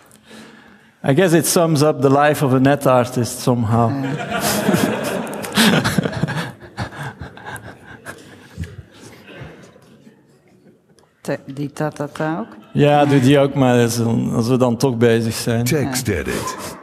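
An elderly man speaks with animation through a microphone.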